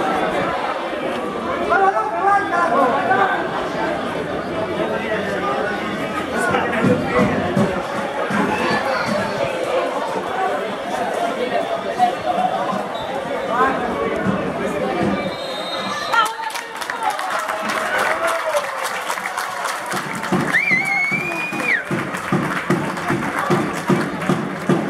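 Young men shout and call out across an open outdoor pitch.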